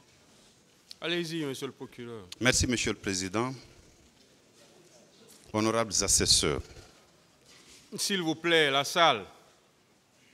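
A man speaks calmly and formally into a microphone.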